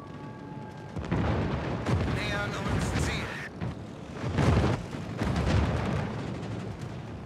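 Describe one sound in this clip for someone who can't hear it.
Anti-aircraft shells burst loudly in rapid booms.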